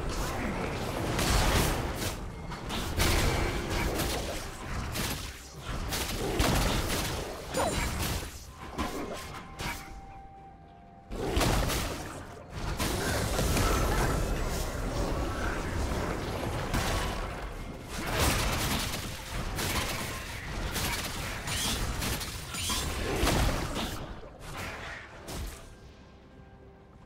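A character in a video game fights, with bursts of impact sounds and spell effects.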